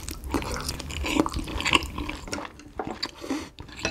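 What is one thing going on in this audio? A young woman slurps soup up close to a microphone.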